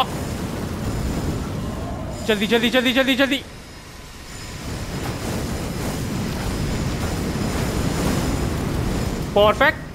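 Flames roar and crackle in a burst of fire.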